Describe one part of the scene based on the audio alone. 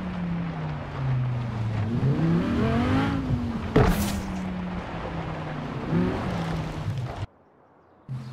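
A car engine revs hard and shifts through gears.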